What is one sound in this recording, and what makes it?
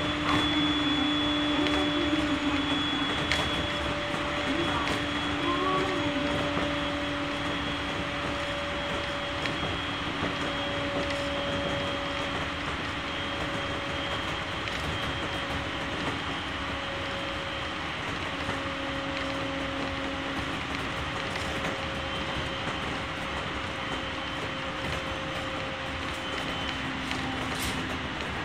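A train rumbles steadily along the track, heard from inside the carriage.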